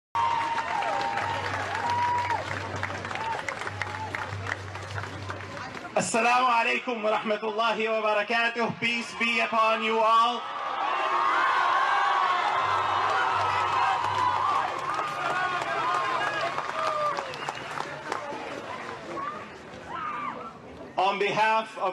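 A large crowd calls out and cheers.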